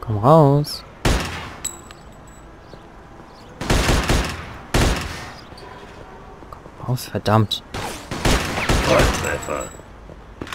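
Gunshots ring out sharply.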